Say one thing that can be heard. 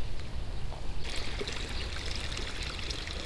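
A small stream trickles and babbles close by.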